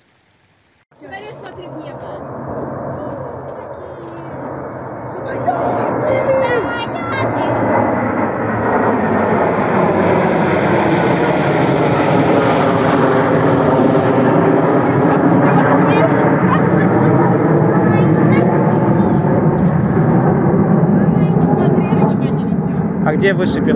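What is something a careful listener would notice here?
A formation of jet planes roars loudly overhead, swelling as it passes.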